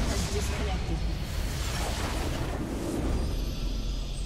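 Loud fighting effects from a video game clash and crackle.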